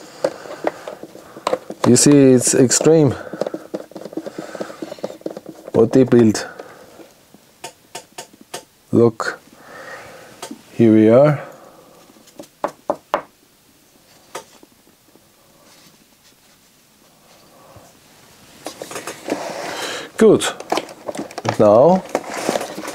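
Hard plastic parts click and rattle as they are handled.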